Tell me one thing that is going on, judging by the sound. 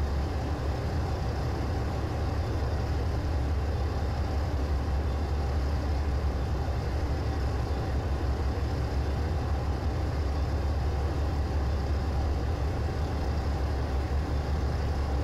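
Train wheels rumble steadily along the rails.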